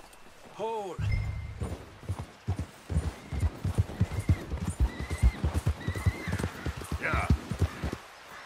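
A horse gallops, hooves thudding on snowy ground.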